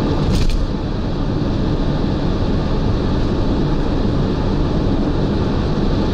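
A car drives fast on a road with a steady low rumble and roar.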